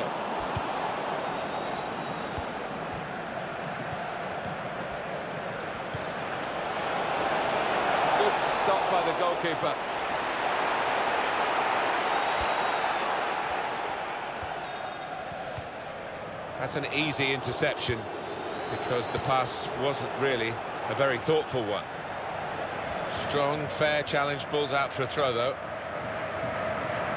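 A large stadium crowd roars and cheers steadily, swelling and fading.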